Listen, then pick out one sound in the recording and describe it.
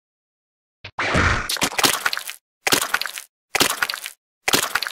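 Hits land with sharp smacks in a fight.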